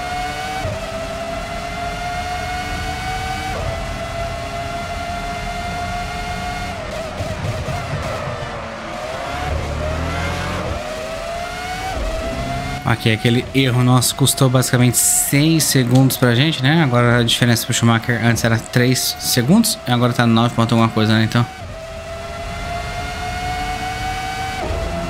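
A racing car engine screams at high revs, rising through the gears and dropping as it slows.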